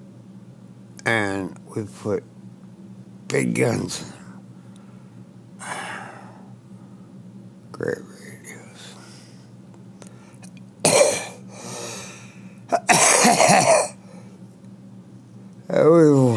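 An elderly man speaks in short bursts into a headset microphone, close and clear.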